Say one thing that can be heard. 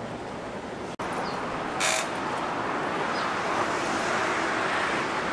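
A busy city street hums with a steady outdoor murmur.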